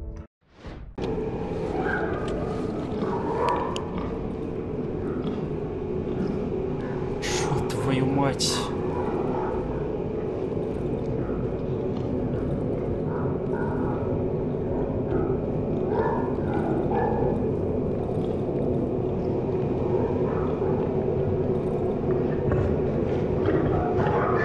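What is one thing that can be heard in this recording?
A young man talks casually and close into a microphone.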